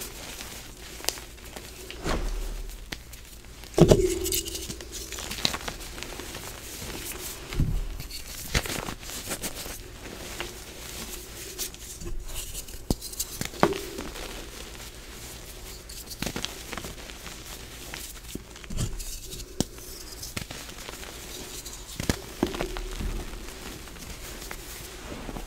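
Hands crumble and squeeze soft chalky blocks, which crunch and crackle.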